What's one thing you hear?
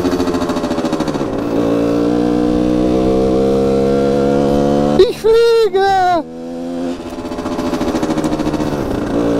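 A motorcycle engine hums steadily while riding, dropping and rising in pitch as gears change.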